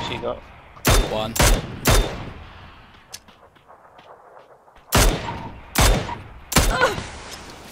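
Rifle shots fire loudly, several in quick bursts, each ringing out briefly.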